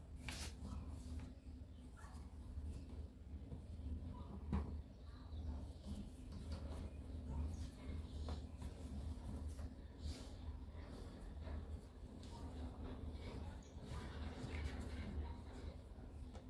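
A cloth towel rustles as a hand handles it.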